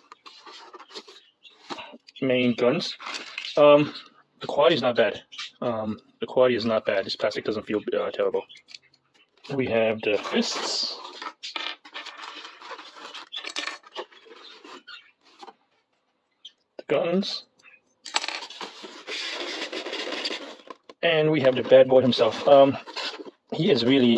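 A foam packing tray squeaks and creaks as parts are pulled from it.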